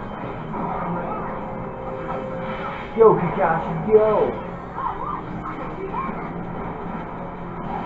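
Fighting game hits and blasts play from a television speaker.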